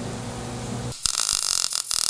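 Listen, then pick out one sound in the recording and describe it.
An arc welder crackles and hisses.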